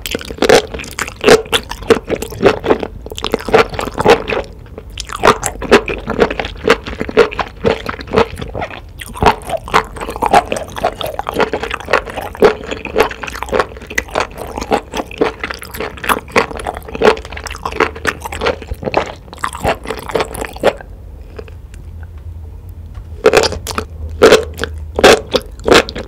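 A woman slurps noodles, close to a microphone.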